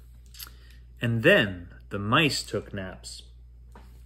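A middle-aged man reads aloud close by, with animation.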